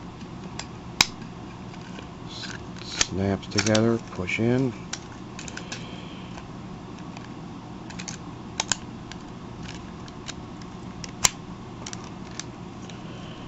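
Plastic toy parts click and clatter as they are handled.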